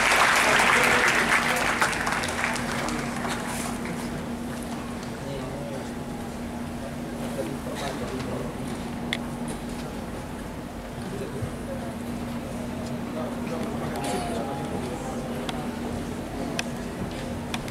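An orchestra plays softly in a large hall.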